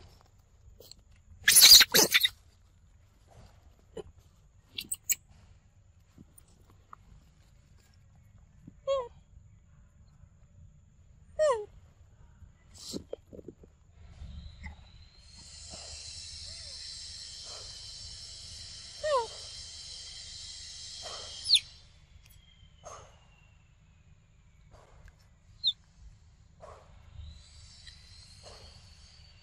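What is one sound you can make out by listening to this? A monkey chews noisily on soft fruit.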